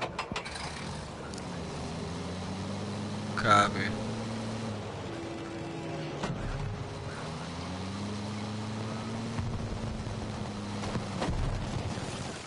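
An armoured vehicle's engine rumbles and revs up and down.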